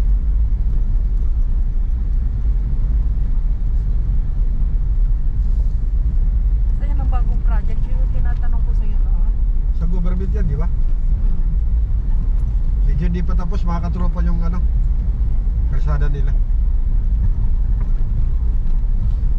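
A car engine hums and tyres rumble low and steady from inside a moving car.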